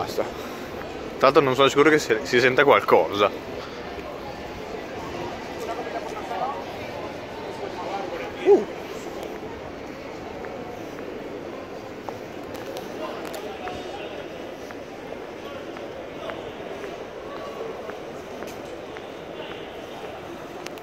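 Men and women chat faintly as they walk past outdoors.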